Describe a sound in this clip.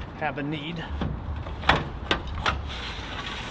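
A metal lid clunks and rattles as it is lifted.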